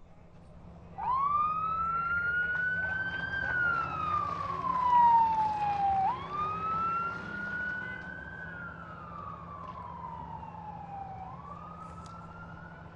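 A siren wails, rising and falling in long sweeps.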